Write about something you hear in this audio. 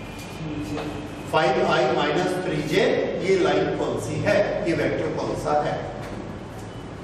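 A middle-aged man speaks with animation, as if teaching.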